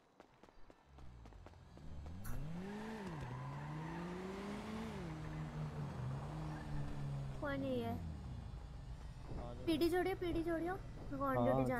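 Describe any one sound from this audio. A car engine hums and revs up and down nearby.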